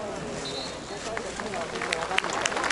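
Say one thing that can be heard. Spectators clap and cheer, louder toward the end.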